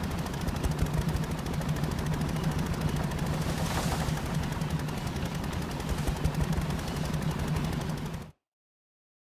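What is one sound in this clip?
Water rushes and splashes against a moving boat's hull.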